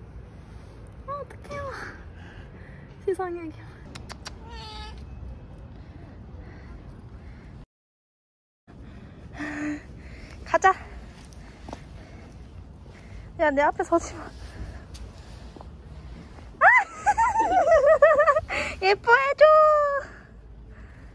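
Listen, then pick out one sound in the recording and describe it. A cat meows repeatedly, loud and close.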